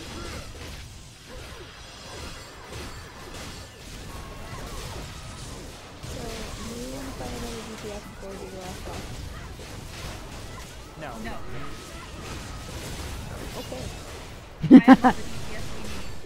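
Fantasy battle sound effects clash and boom.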